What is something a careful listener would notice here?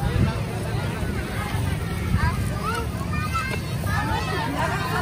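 Young children chatter and call out nearby, outdoors.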